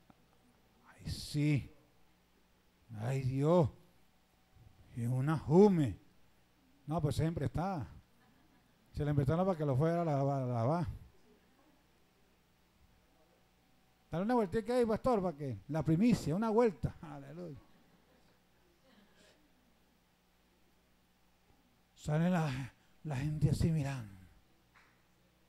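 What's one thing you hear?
A man preaches with animation through a microphone and loudspeakers, in bursts with pauses.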